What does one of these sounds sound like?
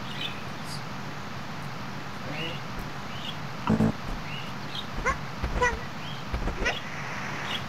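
A small cartoon creature's footsteps patter on grass.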